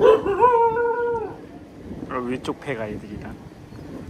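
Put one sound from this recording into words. A dog whines loudly nearby.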